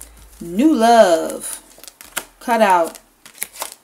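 Playing cards rustle and slap together as they are shuffled.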